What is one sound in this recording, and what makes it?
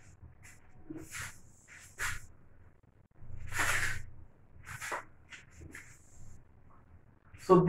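A cloth rubs and squeaks against a whiteboard.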